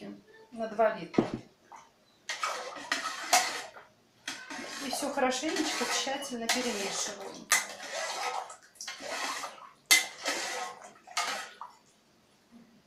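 Water splashes as a hand rinses something in a metal pot.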